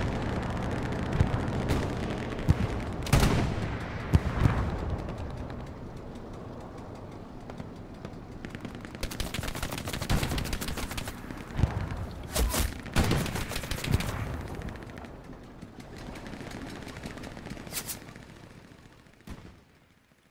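Wind blows hard in a snowstorm outdoors.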